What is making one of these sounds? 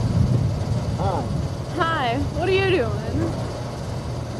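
A young woman speaks briefly and cheerfully, close by.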